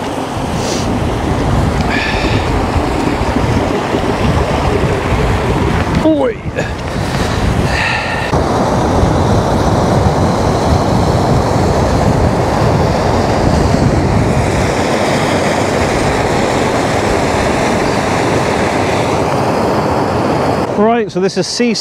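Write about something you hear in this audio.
Wind blows hard across open ground.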